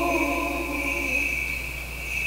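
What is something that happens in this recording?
A man sings a short chant in a large echoing hall.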